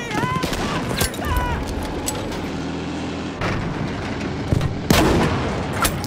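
Explosions burst nearby.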